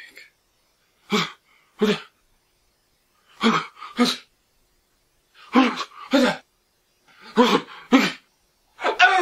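A second young man speaks quietly and closely.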